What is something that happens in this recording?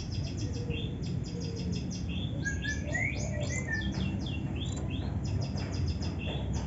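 A songbird sings a rapid, varied song of sharp chirps, trills and whistles close by.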